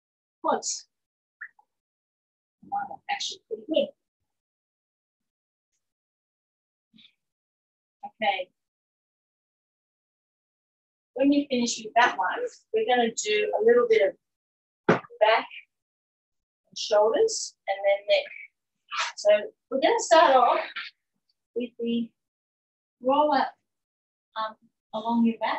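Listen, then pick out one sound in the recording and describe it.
A woman talks calmly and clearly into a microphone.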